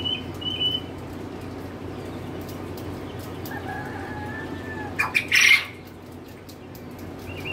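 A chick peeps in short high chirps.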